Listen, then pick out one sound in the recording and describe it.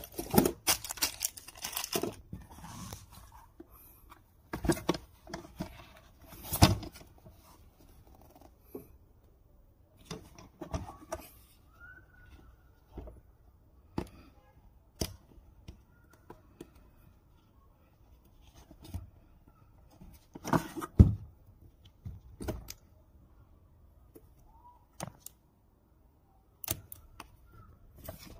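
Hard plastic clicks and knocks as a case is handled.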